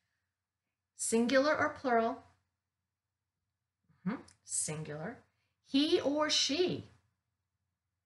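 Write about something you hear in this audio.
An older woman speaks clearly and slowly, close by, as if teaching.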